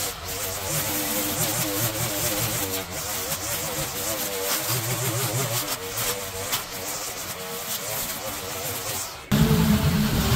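A string trimmer engine whines and buzzes while cutting grass.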